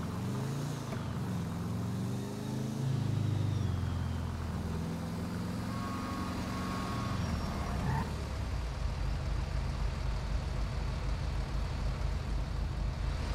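A car engine hums and revs as it drives along, then slows and idles.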